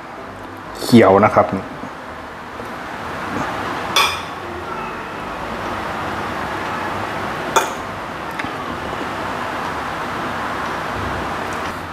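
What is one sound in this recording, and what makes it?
A metal spoon and fork clink against a plate.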